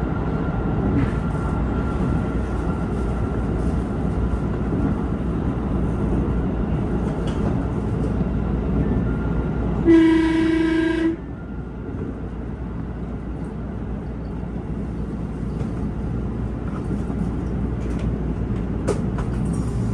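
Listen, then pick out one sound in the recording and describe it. Train wheels clack now and then over rail joints.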